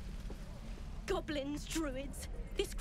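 A young woman speaks calmly and warily.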